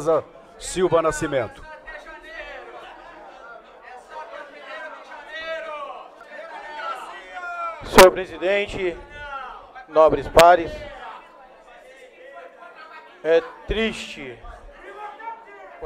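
A man speaks forcefully into a microphone, his voice rising in bursts of emphasis.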